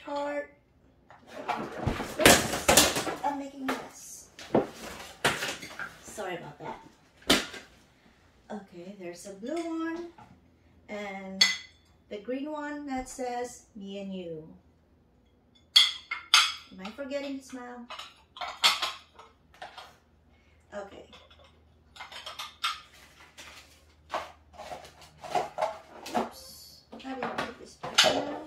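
Ceramic dishes clink and knock together.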